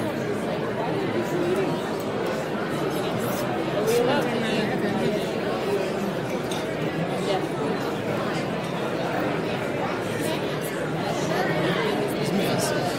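A crowd chatters in a large room.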